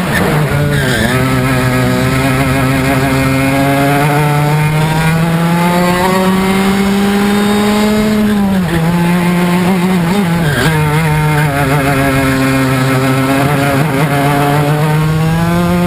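A kart engine buzzes loudly close by, its pitch rising and dropping with the throttle.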